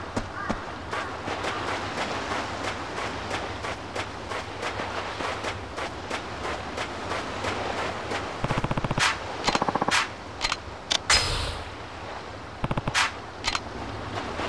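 Gentle waves wash onto a beach.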